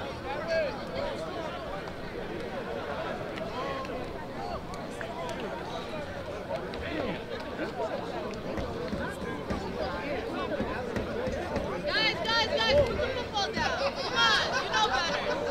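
Many young players and adults talk and chatter at once outdoors.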